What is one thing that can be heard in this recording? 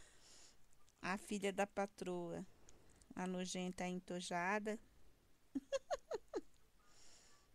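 A woman speaks calmly, close to the microphone.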